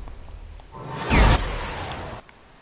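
A loud burst of energy whooshes.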